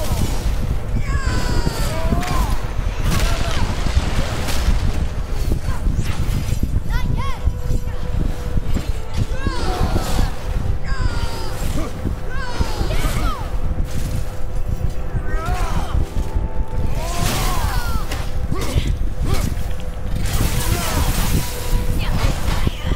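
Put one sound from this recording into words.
Winged creatures screech sharply.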